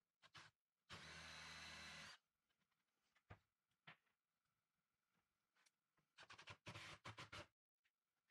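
A cordless drill whirs in short bursts, driving screws into wood.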